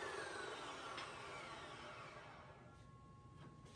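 An abrasive chop saw's blade whines as it spins down.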